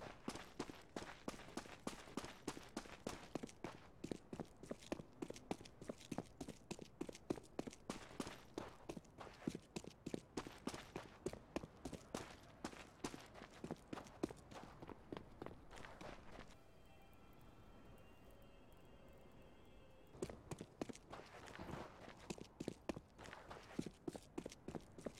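Footsteps thud quickly and steadily on hard ground.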